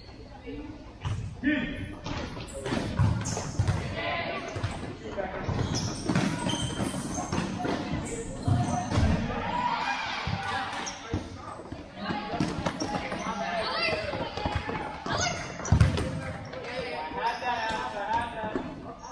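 A ball thuds as players kick it, echoing in a large hall.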